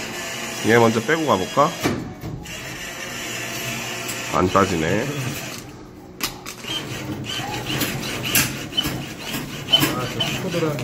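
A claw machine's motor whirs as the claw moves.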